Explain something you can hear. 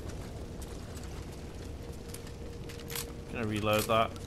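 Flames crackle nearby.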